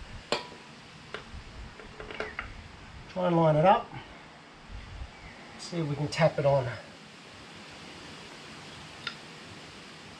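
Metal parts clink and tap as they are handled.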